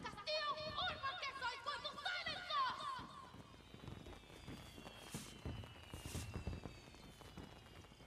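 Fireworks burst and crackle overhead.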